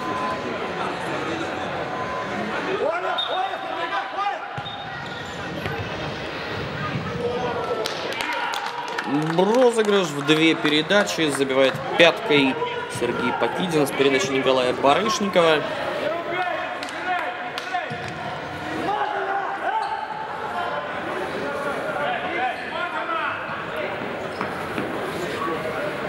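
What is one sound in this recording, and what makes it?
A ball thuds as players kick it in a large echoing hall.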